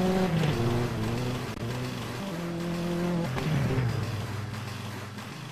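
A racing car engine revs hard and roars through gear changes.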